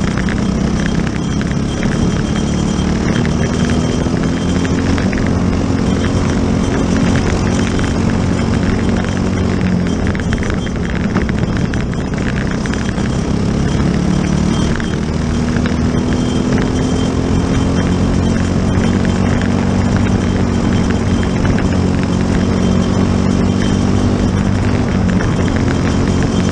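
A racing car engine roars loudly close by, rising and falling in pitch as it speeds up and slows down.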